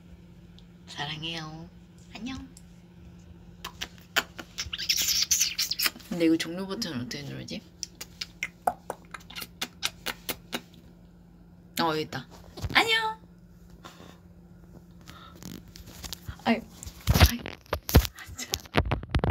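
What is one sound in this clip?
A young woman speaks playfully and close to a phone microphone.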